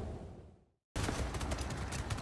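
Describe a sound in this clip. A sled slides over snow.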